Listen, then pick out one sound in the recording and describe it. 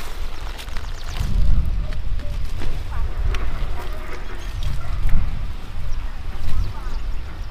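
Cabbage leaves rustle and snap as a woman picks them.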